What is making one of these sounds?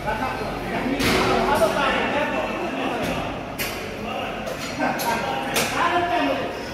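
Metal weight plates clank on an exercise machine.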